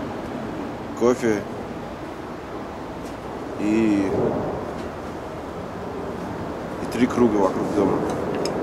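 A man speaks calmly in short phrases close by.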